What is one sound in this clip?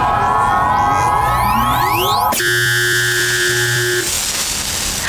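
A laser zaps with a rising electronic whine.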